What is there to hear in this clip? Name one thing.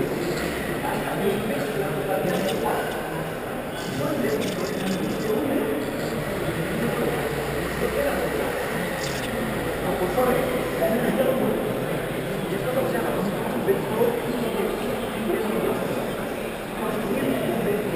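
A large crowd murmurs and chatters throughout a big echoing hall.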